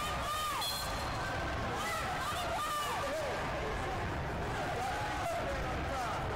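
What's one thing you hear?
Shoes squeak sharply on a mat.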